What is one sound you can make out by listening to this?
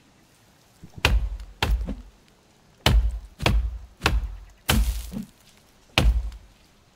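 An axe chops into a tree trunk with heavy, repeated thuds.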